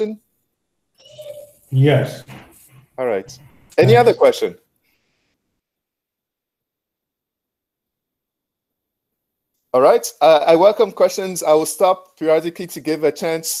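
A man lectures calmly, heard through a headset microphone on an online call.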